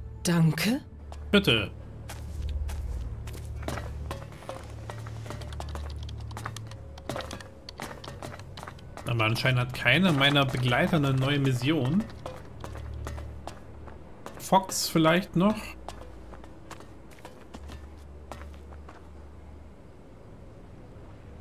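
Footsteps thud on hard floors and metal steps.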